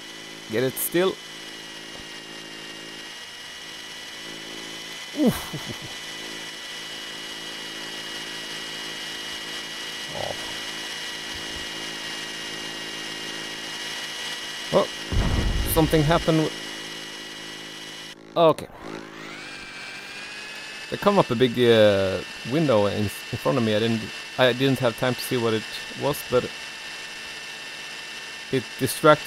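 A model helicopter's motor whines steadily.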